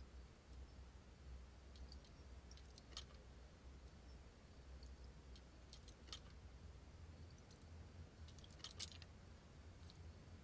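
A lock pick clicks inside a door lock.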